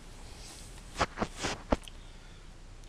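A plastic case clatters as it is handled and set down.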